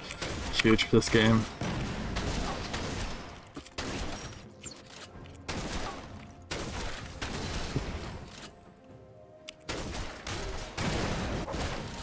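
Video game combat sounds of hits and spells ring out.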